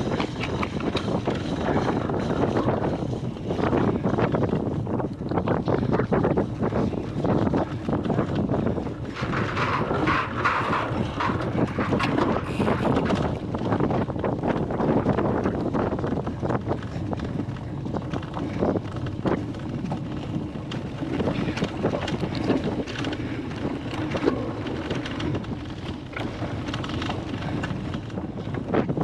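Wind buffets loudly past close by.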